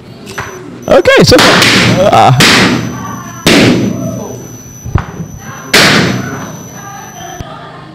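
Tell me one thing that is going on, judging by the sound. Balloons pop sharply, one at a time.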